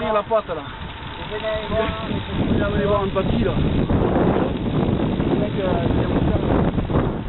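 Wind rushes and buffets loudly outdoors.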